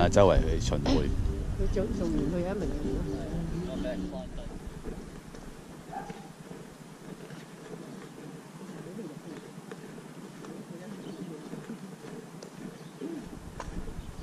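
Footsteps walk on asphalt.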